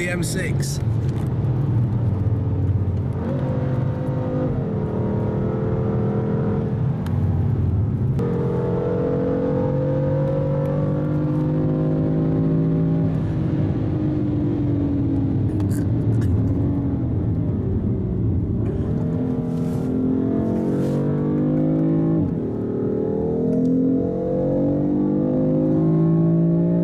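A car engine roars loudly close by, its pitch rising and falling as the car speeds up and slows.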